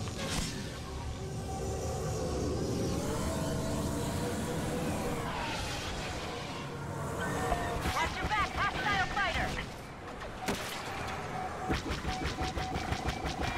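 A spacecraft engine roars steadily.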